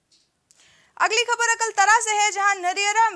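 A young woman speaks clearly into a microphone, like a news reader.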